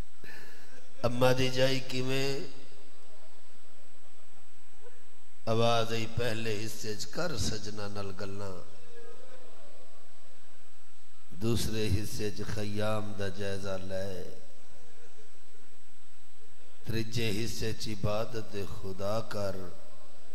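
A man sings a mournful chant loudly into a microphone, in phrases with pauses between them.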